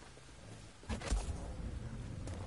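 A lightsaber ignites with a loud whoosh.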